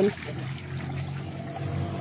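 Water splashes as it is poured from a bucket.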